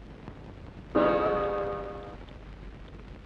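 A clock chimes once, loud and ringing.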